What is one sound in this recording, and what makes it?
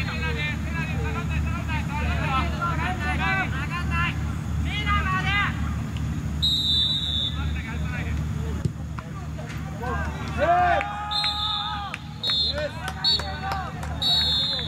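Men shout and call out across an open field.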